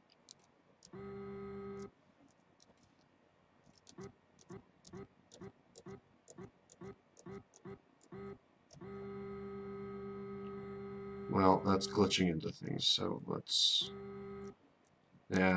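A small engine drones steadily.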